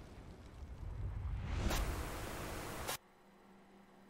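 Static hisses loudly and cuts off abruptly.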